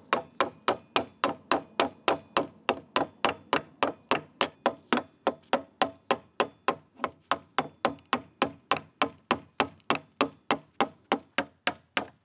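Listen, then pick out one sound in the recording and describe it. A chisel splits and cracks a thin wooden veneer.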